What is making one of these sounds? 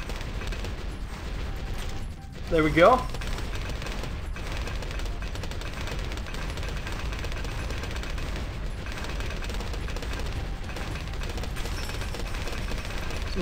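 Rapid popping and crackling explosions from a video game go on without a break.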